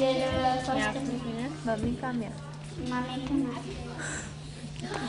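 A young child sings into a microphone.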